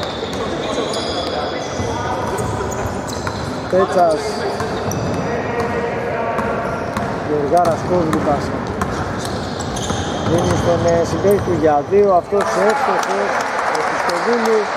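A basketball thumps as it is dribbled on a wooden floor.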